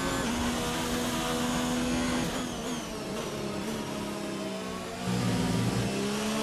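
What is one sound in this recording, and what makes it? A racing car engine roars at high revs, its pitch falling as the car slows for a bend.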